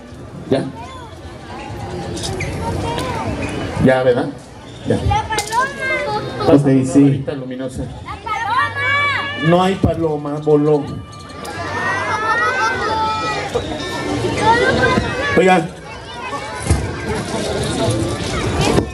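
A man speaks loudly and with animation to an audience outdoors.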